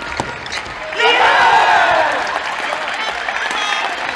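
Young men shout and cheer in an echoing hall.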